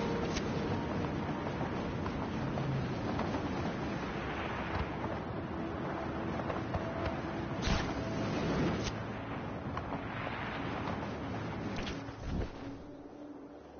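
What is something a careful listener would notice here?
Wind rushes loudly past a gliding wingsuit flyer.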